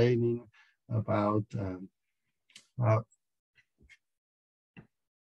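A middle-aged man speaks with animation, heard close through a microphone on an online call.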